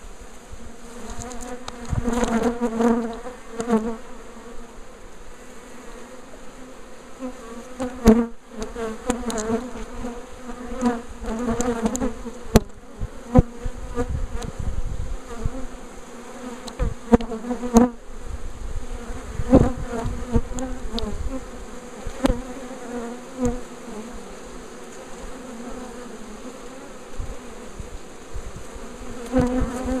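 Many bees buzz steadily up close.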